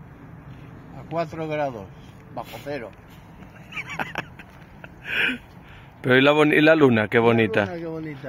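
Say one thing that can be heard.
A man speaks close by outdoors.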